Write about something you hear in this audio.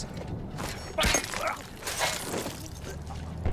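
A shovel strikes a man with a heavy thud.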